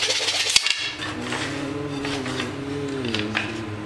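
Wooden strips knock and rub together in a man's hands.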